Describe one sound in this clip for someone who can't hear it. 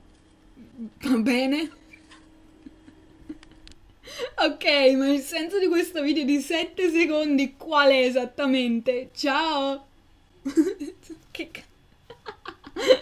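A young woman talks animatedly into a nearby microphone.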